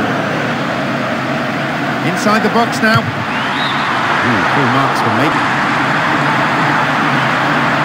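A stadium crowd roars steadily in the distance.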